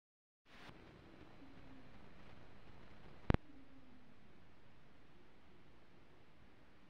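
A needle hisses and crackles on a spinning old record.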